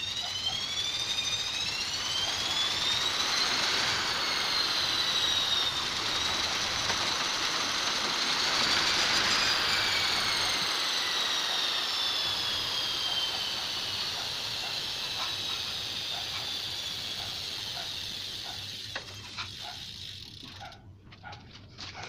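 A bicycle chain and rear wheel whir as the pedals are cranked by hand, rising and falling in pitch.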